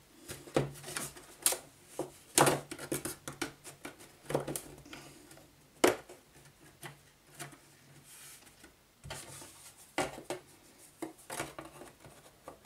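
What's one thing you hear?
Cardboard pieces knock and scrape together as they are handled.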